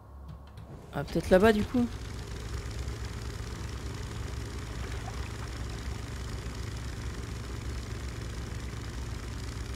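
A small boat's motor drones steadily.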